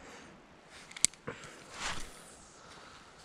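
A fishing reel clicks and whirs as it is cranked.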